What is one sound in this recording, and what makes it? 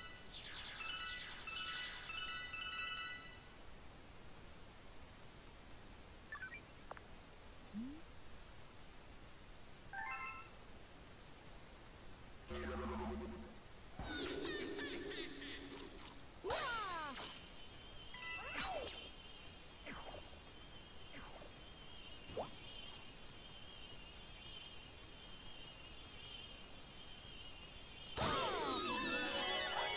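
Bright game sound effects chime and sparkle.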